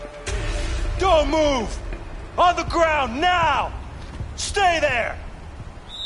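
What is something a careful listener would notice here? A man shouts commands loudly.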